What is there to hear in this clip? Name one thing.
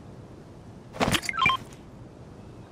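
A short game chime sounds as an item is picked up.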